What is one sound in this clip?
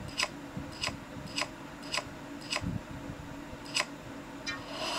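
A game menu clicks in quick beeps.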